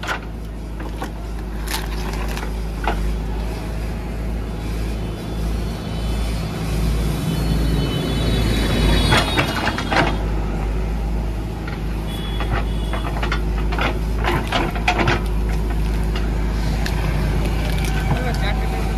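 A digger bucket scrapes and knocks through soil and roots.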